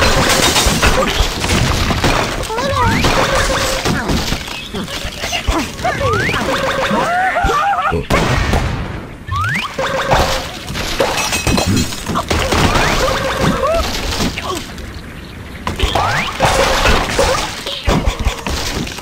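Wooden blocks crash and clatter as structures collapse.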